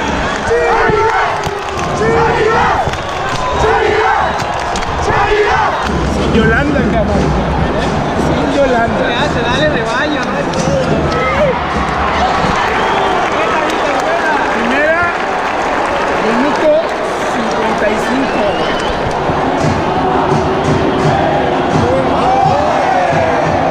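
A large stadium crowd chants and sings loudly together.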